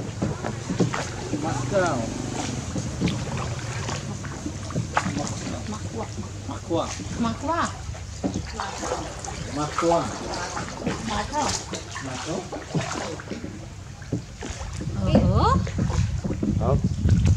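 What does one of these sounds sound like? Water laps and splashes gently against a small boat.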